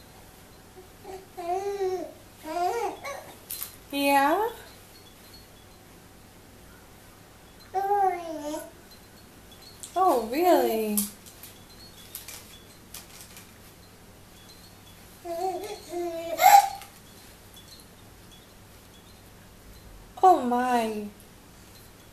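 A baby coos and squeals in short bursts close by.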